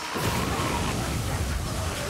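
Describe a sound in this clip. A magical blast whooshes loudly.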